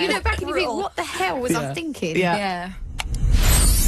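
A young woman speaks with animation into a microphone, close by.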